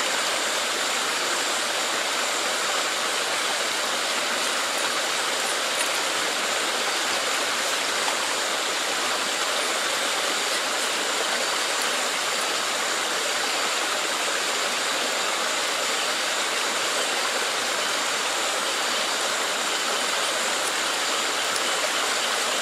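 Shallow water splashes as hands work in it.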